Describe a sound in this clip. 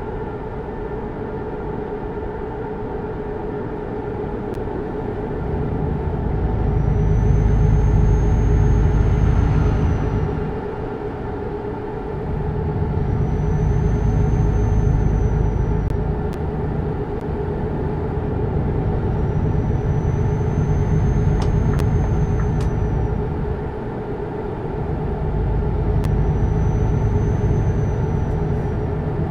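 A truck engine hums steadily, rising and falling as it speeds up and shifts gears.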